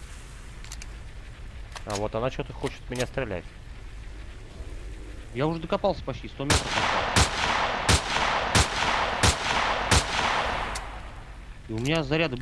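A rifle's bolt clicks and clatters as it is reloaded.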